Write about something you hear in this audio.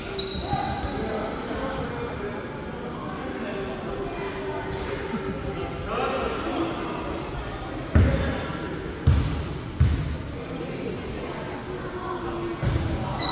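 Children shout and call out in an echoing hall.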